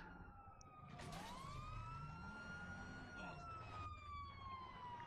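A helicopter whirs overhead.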